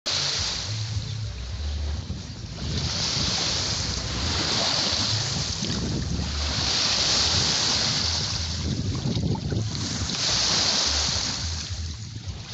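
Small waves lap against a wooden boat.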